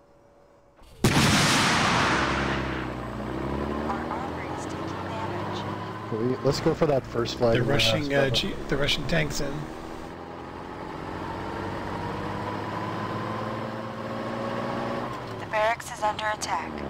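A heavy vehicle engine rumbles and revs as it drives.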